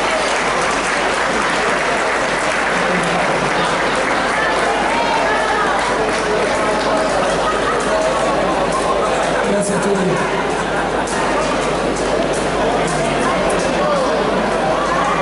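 A man speaks into a microphone over loudspeakers on a stage.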